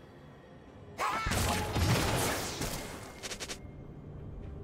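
A magical whoosh and shimmer sound out in a video game.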